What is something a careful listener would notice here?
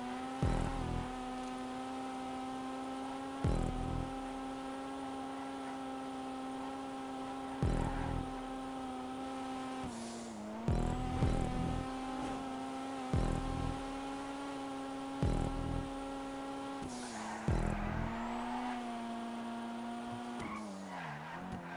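A car engine hums steadily at high revs, rising and dipping with gear changes.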